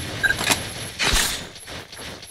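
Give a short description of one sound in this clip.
A large blade swishes through the air.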